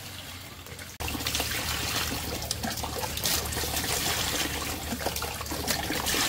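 Water pours into a basin of water.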